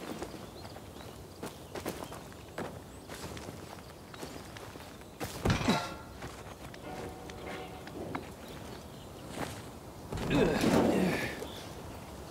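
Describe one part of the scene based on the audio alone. Hands scrape and grip on rough rock.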